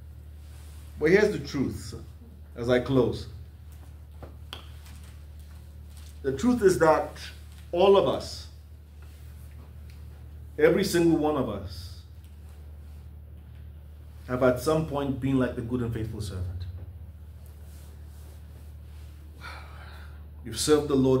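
A man speaks expressively in short bursts, with long pauses.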